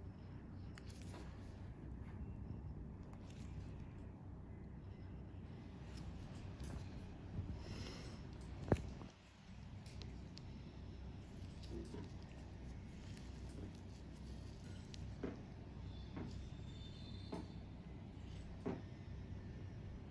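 Rubber-gloved fingers rub and press against skin.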